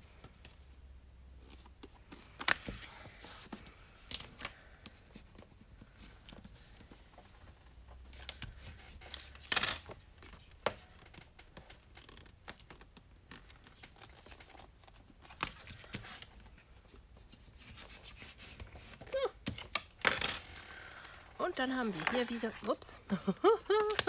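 Paper rustles and slides as hands fold and handle it.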